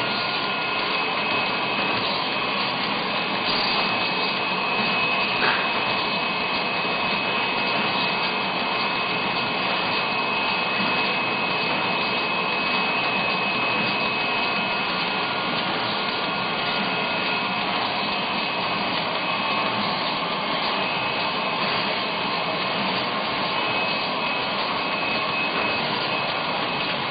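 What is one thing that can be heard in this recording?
Packaging machines run with a steady mechanical whirr and clatter.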